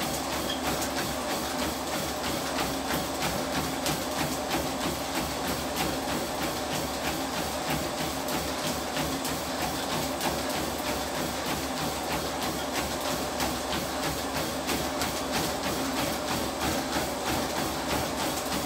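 Feet pound in a fast, steady rhythm on a treadmill belt.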